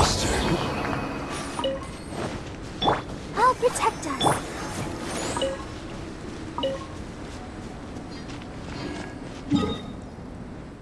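Magical game effects whoosh and chime in quick bursts.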